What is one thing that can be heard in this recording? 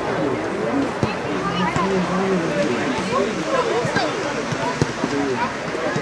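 Young children shout and call out across an open field.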